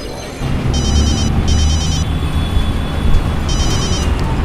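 A mobile phone beeps softly as its keys are pressed.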